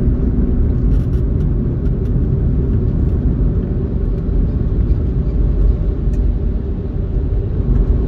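Trucks rumble nearby on the road.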